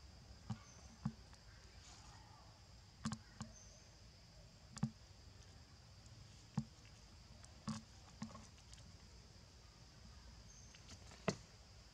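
A monkey chews on food nearby.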